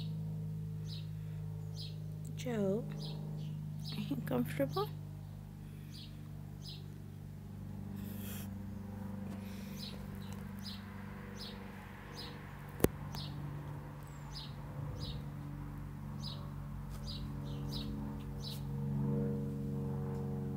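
A cat purrs steadily close by.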